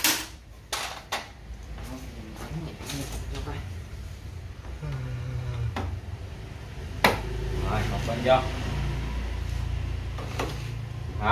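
Tools clink and knock against metal parts.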